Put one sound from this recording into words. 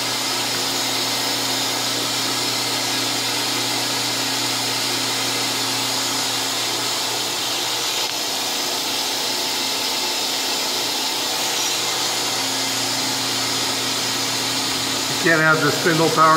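Liquid coolant sprays and splashes steadily inside a machine.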